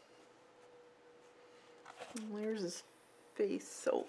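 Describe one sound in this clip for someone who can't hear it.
A sheet of paper rustles as it is lifted.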